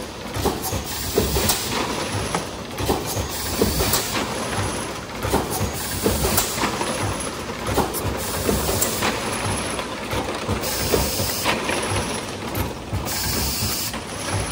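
Machine parts clank and knock repeatedly.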